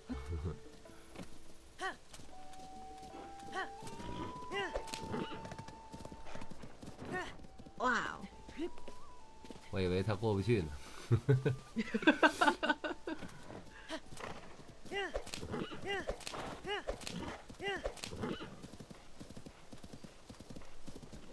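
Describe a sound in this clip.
A horse gallops over grass with rapid, thudding hoofbeats.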